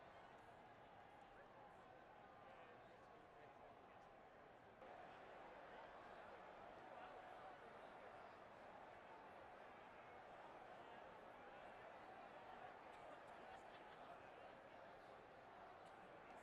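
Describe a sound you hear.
A large stadium crowd roars steadily, growing louder partway through.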